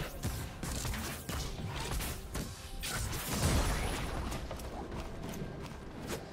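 Game spell effects whoosh and blast in quick bursts during a fight.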